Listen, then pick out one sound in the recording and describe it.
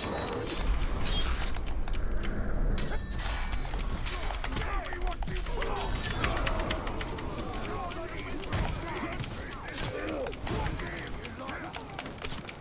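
Blades clash and strike in a fierce fight.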